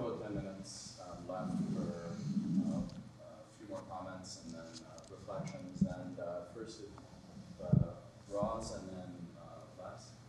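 A man speaks calmly and steadily through a microphone.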